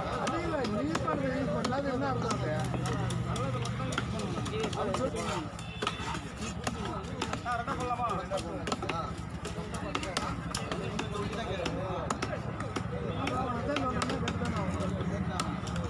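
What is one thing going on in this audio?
A heavy knife chops through fish onto a wooden block with sharp knocks.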